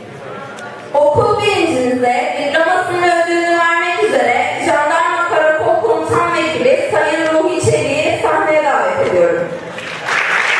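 A young woman sings through a microphone in a large hall.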